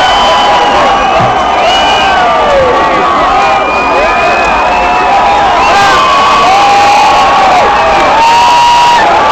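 Live rock music plays loudly through big speakers in a large hall.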